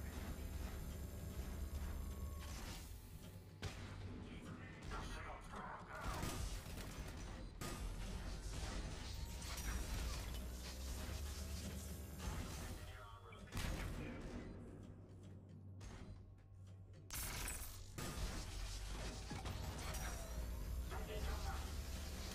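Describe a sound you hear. A man talks with animation through a close microphone.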